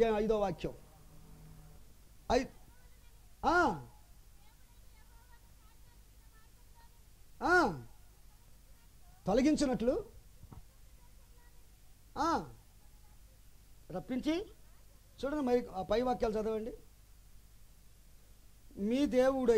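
A man speaks through a microphone, calling out in short, loud, emotional bursts with pauses between them.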